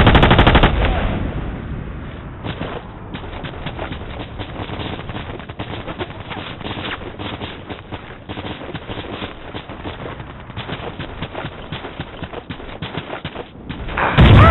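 Footsteps crunch quickly on dry ground.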